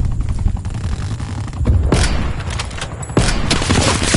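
A helicopter's rotor thuds steadily nearby.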